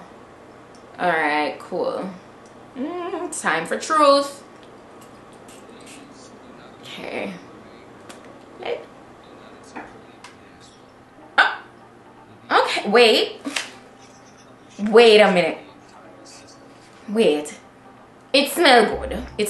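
A young woman talks with animation close to a microphone, pausing between phrases.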